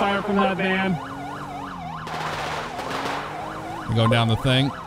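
A police siren wails with quick rising and falling yelps.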